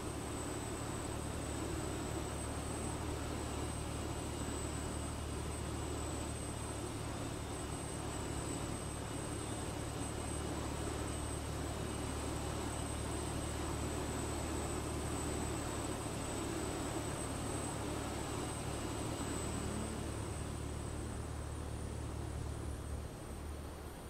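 A jet engine whines steadily as a small airliner taxis.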